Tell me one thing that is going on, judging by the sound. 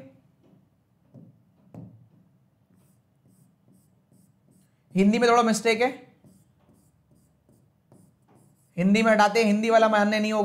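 A marker squeaks on a board.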